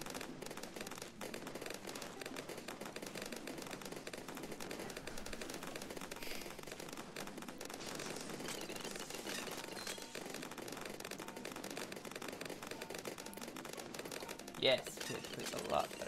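Game explosions and pops crackle quickly and steadily.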